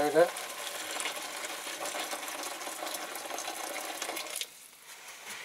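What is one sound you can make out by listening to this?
Liquid pours steadily into a plastic tub.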